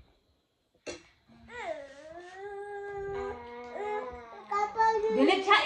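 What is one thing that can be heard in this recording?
A young boy sings and talks with animation close by.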